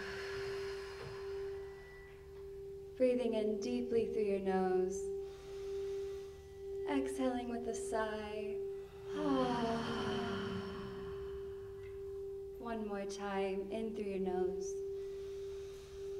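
A singing bowl hums with a steady ringing tone.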